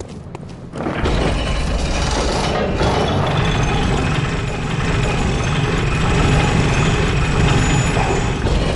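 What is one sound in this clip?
A lift rumbles and clanks loudly as it moves.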